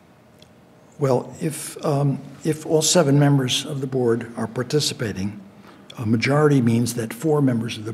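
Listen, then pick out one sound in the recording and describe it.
A man speaks calmly into a microphone, heard over a room's sound system.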